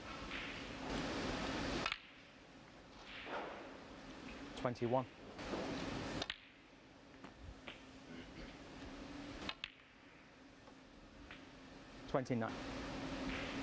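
A cue tip strikes a snooker ball with a sharp click.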